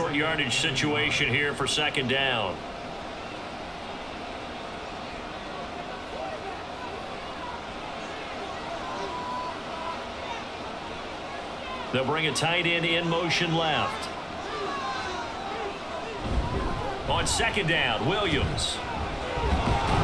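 A large stadium crowd murmurs and roars throughout.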